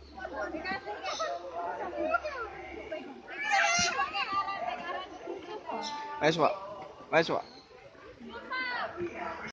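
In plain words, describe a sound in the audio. Several women chat with animation close by, outdoors.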